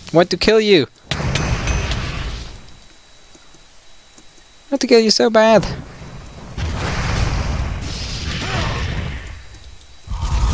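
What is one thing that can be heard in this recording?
Fireballs whoosh and burst.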